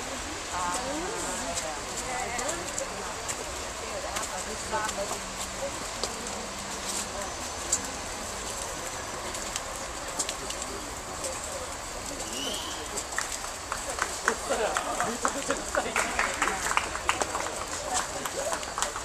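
Young adults chatter quietly outdoors.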